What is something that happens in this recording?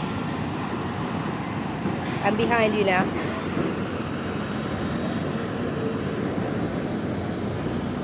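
Cars drive past close by on a city street.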